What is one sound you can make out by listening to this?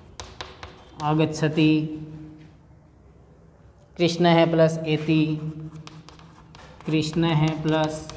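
A man speaks calmly and clearly, as if teaching, close by.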